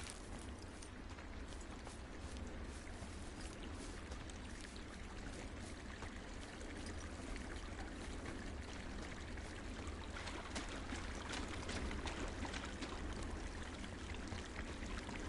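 A stream of water rushes and babbles close by.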